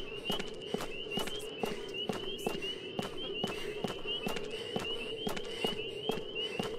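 Footsteps run quickly on a rough road.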